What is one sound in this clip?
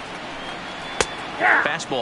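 A baseball smacks sharply once against a bat.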